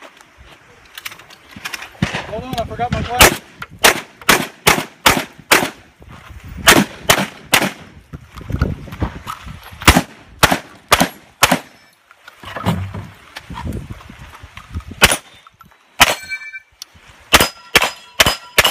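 Gunshots crack loudly outdoors in rapid bursts.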